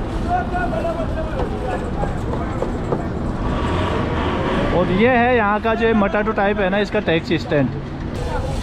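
Car engines hum as vehicles move along the street.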